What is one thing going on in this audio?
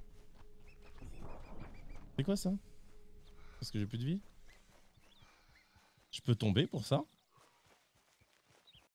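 Footsteps rustle through grass at a steady running pace.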